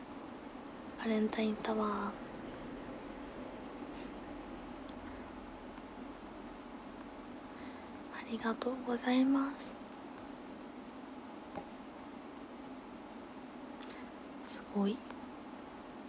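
A young woman speaks softly and briefly into a nearby microphone, with long pauses.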